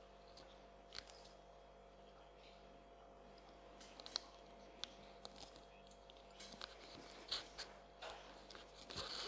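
A metal belt buckle clicks and rattles.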